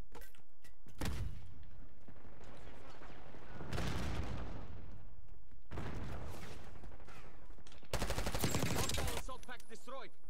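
Rapid gunfire from a rifle rattles in bursts.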